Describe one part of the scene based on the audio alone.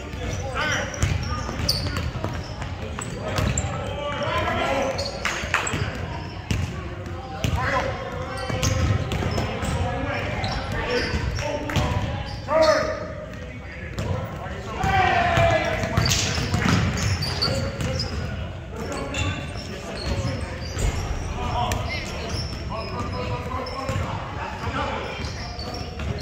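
Players shout and call out to each other across the court.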